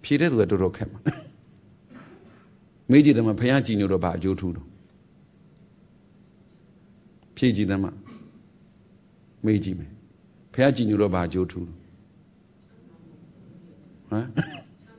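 A man speaks calmly and close up, in short phrases with pauses.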